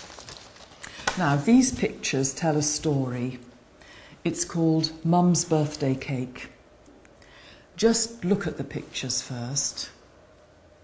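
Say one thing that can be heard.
An elderly woman speaks calmly and clearly close by.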